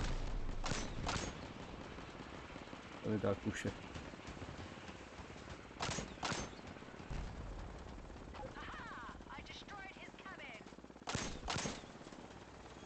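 Gunfire and explosions from a game boom repeatedly.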